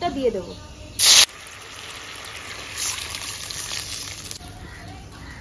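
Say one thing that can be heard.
Hot oil sizzles in a pan.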